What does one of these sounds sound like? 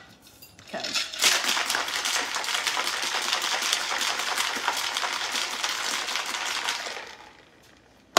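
Ice rattles hard inside a cocktail shaker being shaken.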